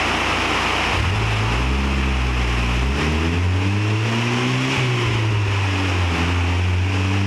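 A car engine revs up and down loudly.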